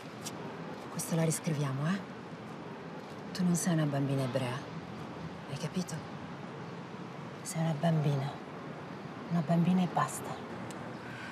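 A woman speaks softly and warmly close by.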